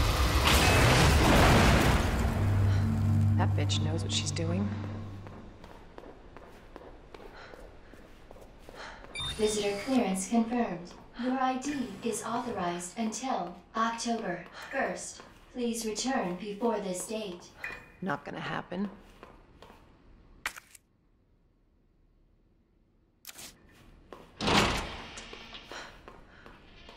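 High heels click steadily on a hard floor.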